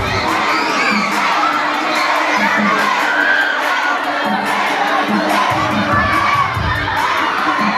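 A large crowd of children and adults chatters and shouts loudly indoors.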